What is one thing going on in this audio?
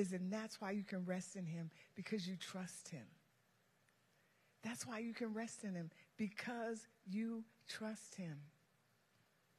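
A woman speaks calmly through a microphone in a large hall.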